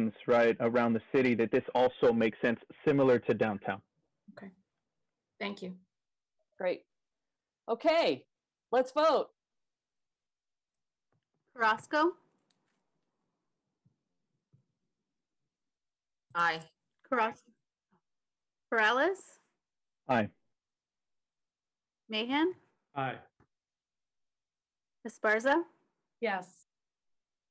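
A woman speaks calmly over an online call, pausing often.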